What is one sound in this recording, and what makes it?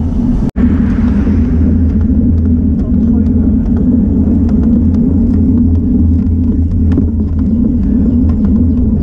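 Wind rumbles and buffets loudly across the microphone while riding outdoors.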